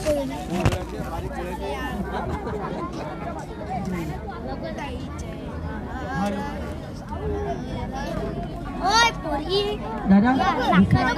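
A crowd of men chatter and call out loudly outdoors.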